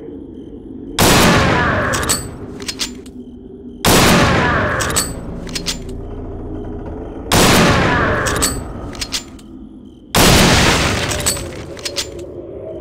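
A rifle fires loud booming shots that echo.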